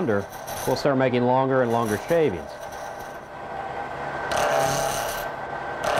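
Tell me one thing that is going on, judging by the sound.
A cutting tool scrapes against spinning wood.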